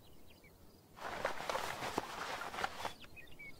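Dry grass and leaves rustle as someone pushes through them.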